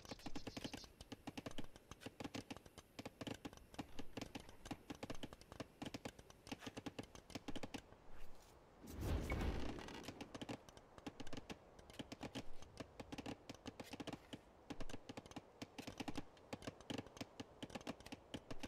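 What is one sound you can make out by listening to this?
Axes chop wood and hammers knock in quick, busy taps.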